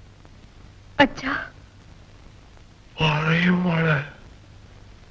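An elderly man sobs.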